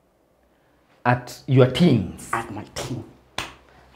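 A man answers calmly close to a microphone.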